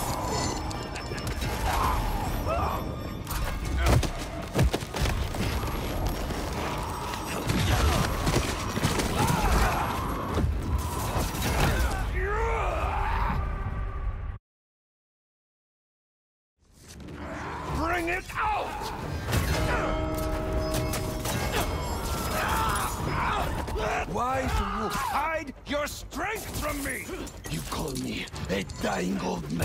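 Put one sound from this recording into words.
Heavy blows and thuds land in a scuffle.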